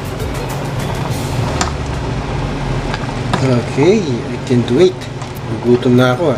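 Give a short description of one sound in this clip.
A spoon stirs and clinks against a metal pot.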